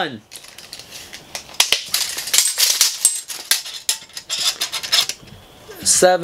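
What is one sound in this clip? A metal tape measure rattles and clicks as it is pulled out.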